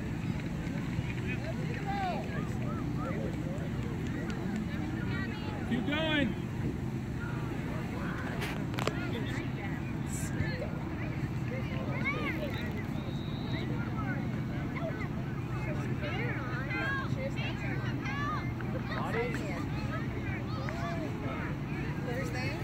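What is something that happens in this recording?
Children and adults shout and call out far off across an open field.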